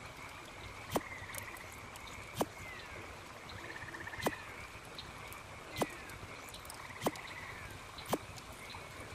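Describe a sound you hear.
Soft interface clicks sound as items are moved between inventories.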